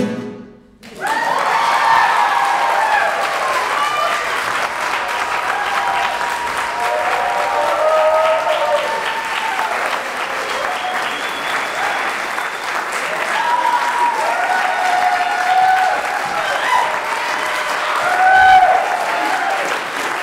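Audience members cheer and whoop.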